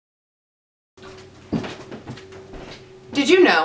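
Footsteps sound on a floor.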